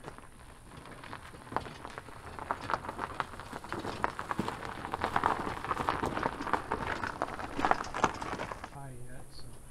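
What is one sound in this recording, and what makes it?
A hand truck carrying a wooden frame bumps and clatters over rough grassy ground.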